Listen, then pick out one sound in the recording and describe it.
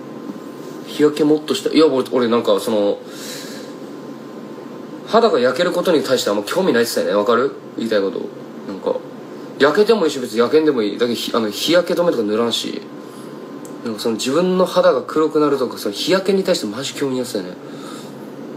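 A young man speaks casually and close to a phone microphone, in bursts with pauses.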